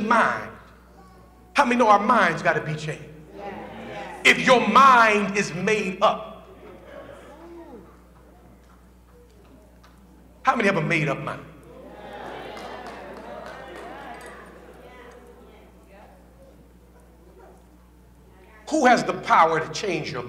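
A man preaches with animation into a microphone, in loud bursts with pauses, echoing in a large hall.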